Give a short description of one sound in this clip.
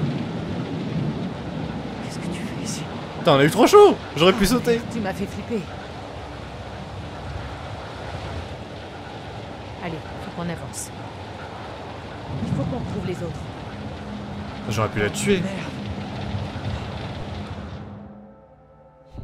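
Heavy rain falls steadily outdoors.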